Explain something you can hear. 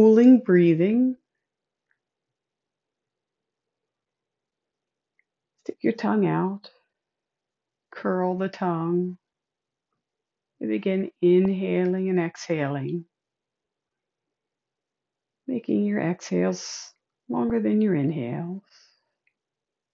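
A woman speaks calmly and slowly through a close microphone, with long pauses.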